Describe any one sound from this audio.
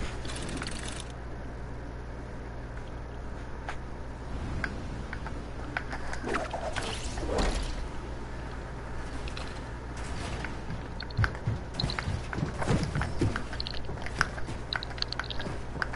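Wooden building pieces knock into place in quick succession.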